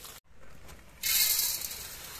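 Dry corn kernels pour and rattle into a metal wok.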